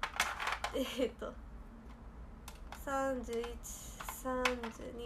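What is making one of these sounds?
Plastic candy wrappers crinkle and rustle.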